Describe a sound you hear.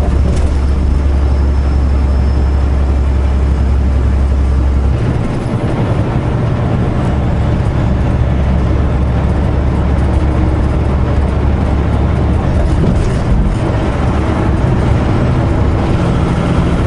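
Tyres roar steadily on the highway.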